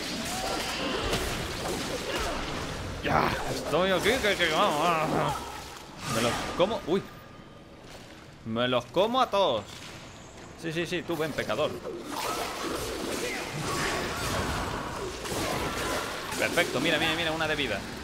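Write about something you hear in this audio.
Sword slashes and impacts of combat ring out from a game.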